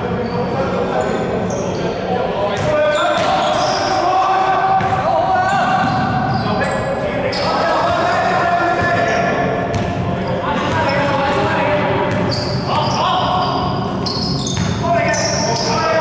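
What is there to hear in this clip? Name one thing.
Basketball shoes squeak on a hardwood court in a large echoing hall.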